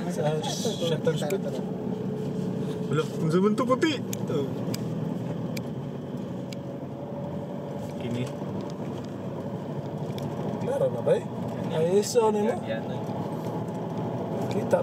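Tyres rumble and rattle over a rough dirt road.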